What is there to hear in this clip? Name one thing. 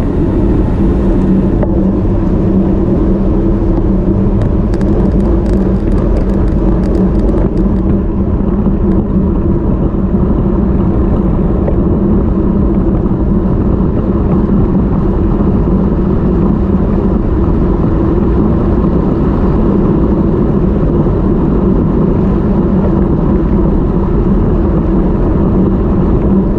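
Wind roars loudly and steadily across a microphone outdoors.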